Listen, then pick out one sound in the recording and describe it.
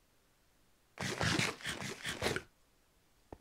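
A pickaxe strikes and breaks blocks of ice with a crunching crackle.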